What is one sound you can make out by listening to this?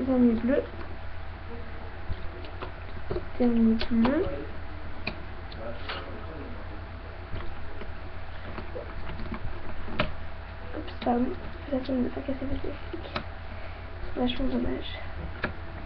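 Plastic pegs click and tap as fingers work rubber bands on a loom.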